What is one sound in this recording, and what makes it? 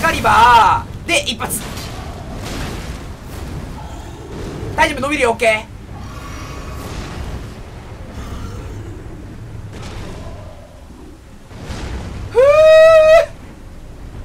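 A large creature lets out loud, shrieking cries.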